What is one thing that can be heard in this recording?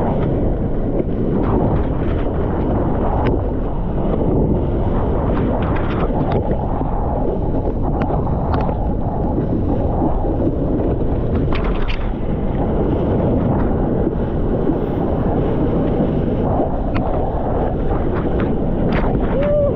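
Water rushes and splashes steadily around a surfboard gliding along a wave.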